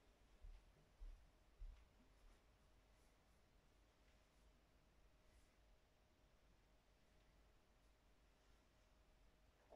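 Footsteps shuffle across a floor nearby.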